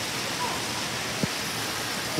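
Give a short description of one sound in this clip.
Water splashes steadily from a fountain.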